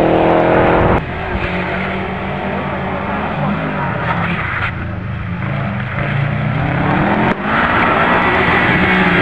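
Another rally car engine rumbles and revs as the car pulls away.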